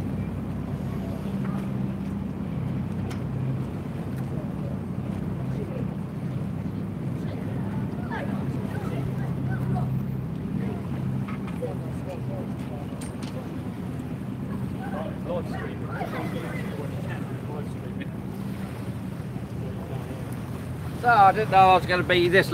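Water laps gently against a wall.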